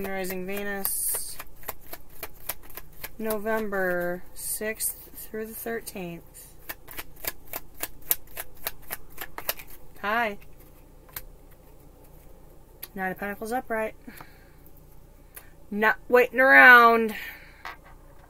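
A woman speaks calmly in short phrases, close by.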